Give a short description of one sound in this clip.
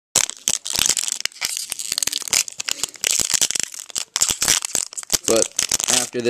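Playing cards rustle and flick as they are handled up close.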